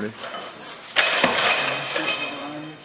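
A heavy barbell clanks as a man lifts it.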